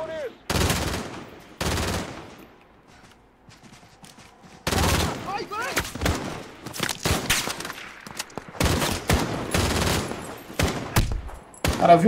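Sniper rifle shots boom loudly, one after another.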